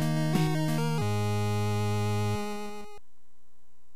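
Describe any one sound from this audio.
Beeping chiptune video game music plays, then cuts off.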